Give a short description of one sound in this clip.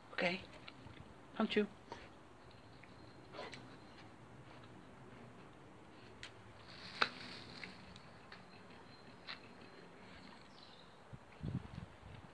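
A dog sniffs closely at something on the ground.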